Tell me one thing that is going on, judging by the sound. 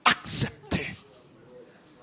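A middle-aged man shouts forcefully into a microphone.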